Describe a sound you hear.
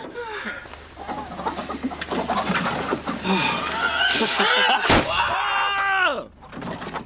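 A young man shouts with excitement close by.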